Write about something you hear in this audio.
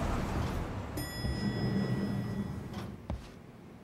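An elevator bell chimes.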